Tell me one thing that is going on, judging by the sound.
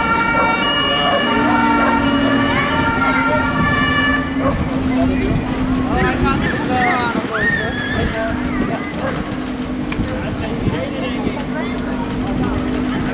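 A sports car engine rumbles and revs as the car rolls slowly past.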